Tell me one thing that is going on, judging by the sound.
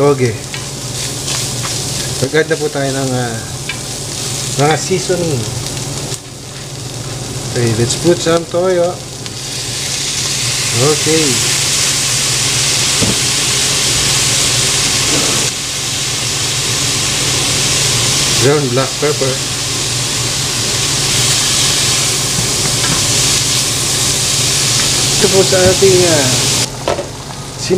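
Food sizzles in a hot pan.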